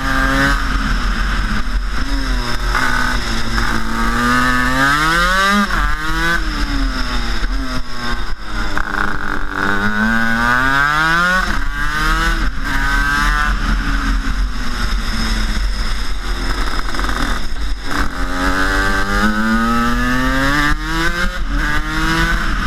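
Wind rushes past the microphone.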